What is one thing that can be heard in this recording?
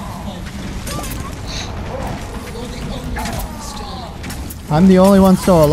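Video game blasts and magical effects whoosh and crash.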